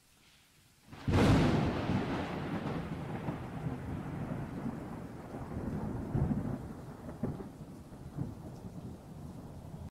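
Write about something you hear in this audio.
Thunder cracks loudly and then rumbles on, slowly fading.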